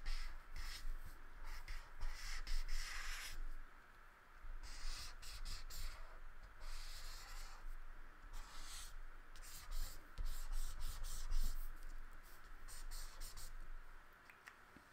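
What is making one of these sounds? A crayon scribbles and rubs across paper.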